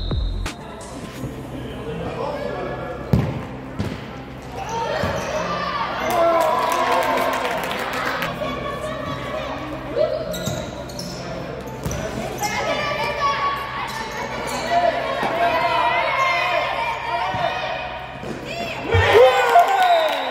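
Children shout and cheer in a large echoing hall.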